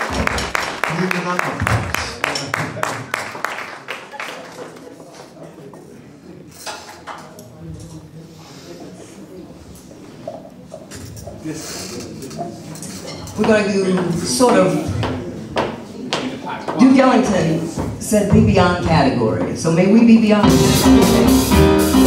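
An upright bass is plucked in a walking line.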